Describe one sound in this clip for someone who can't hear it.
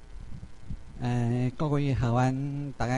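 A middle-aged man speaks through a microphone.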